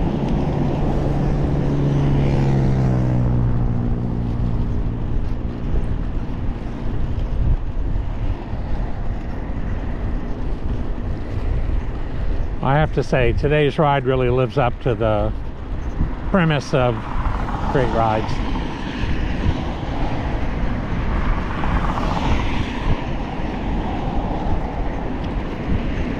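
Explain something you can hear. Bicycle tyres hum steadily on a paved path.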